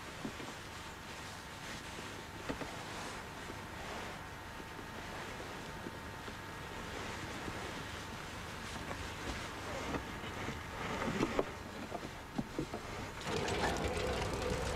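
Soft cloth rustles as a towel is pressed down.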